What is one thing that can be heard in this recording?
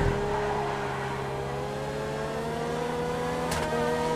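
Tyres screech on asphalt through turns.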